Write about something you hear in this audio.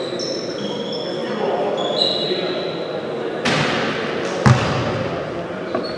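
A man speaks firmly to players in an echoing hall.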